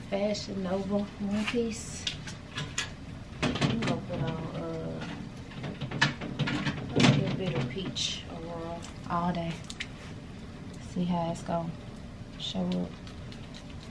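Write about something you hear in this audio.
A young woman speaks close to the microphone in a calm, friendly voice.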